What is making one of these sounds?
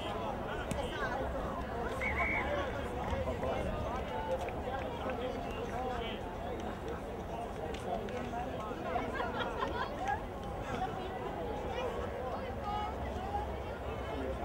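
Several men talk and call out nearby, outdoors.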